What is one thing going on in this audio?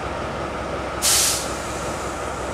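Air hisses briefly and sharply from a train.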